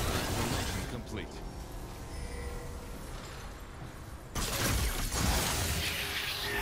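Combat sound effects clash and crackle from a fast-paced video game.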